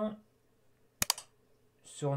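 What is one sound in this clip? A mouse button clicks once.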